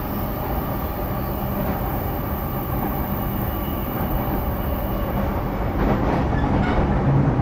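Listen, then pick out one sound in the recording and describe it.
An electric train rumbles steadily along the tracks with a low motor hum.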